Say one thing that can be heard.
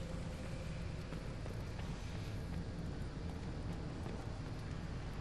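Footsteps run quickly over a stone floor.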